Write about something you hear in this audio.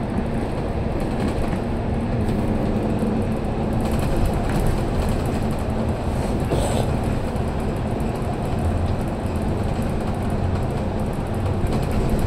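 A vehicle's engine rumbles steadily while driving through an echoing tunnel.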